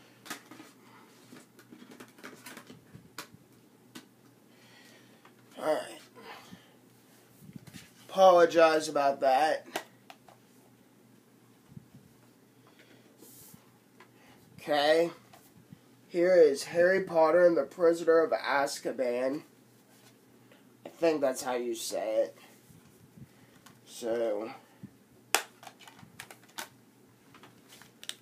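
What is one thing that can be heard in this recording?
Items rustle and tap as a young man handles them.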